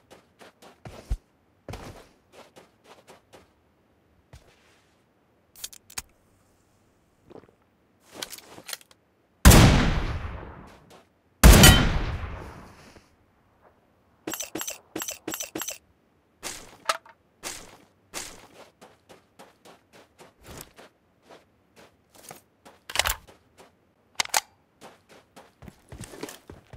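Footsteps crunch quickly on gravel.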